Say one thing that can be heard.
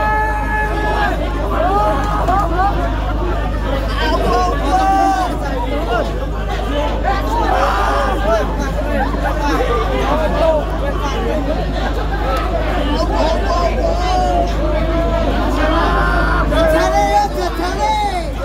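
A dense crowd of people talks nearby.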